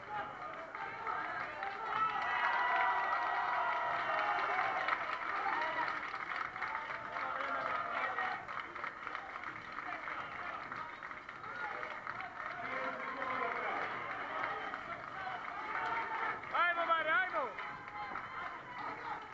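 A crowd of men shout and cheer with animation in an echoing hall.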